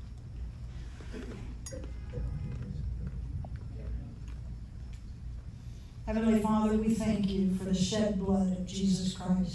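An elderly woman speaks calmly into a microphone, close by.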